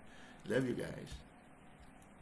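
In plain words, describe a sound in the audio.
A middle-aged man laughs briefly, heard through an online call.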